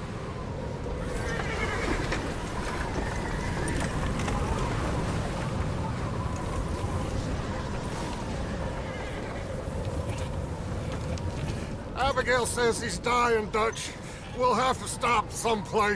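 Horse-drawn wagons creak and rumble slowly.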